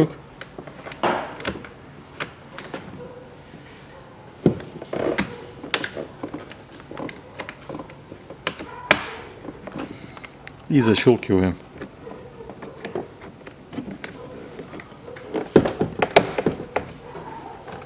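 Small clicks and taps of plastic against the door panel.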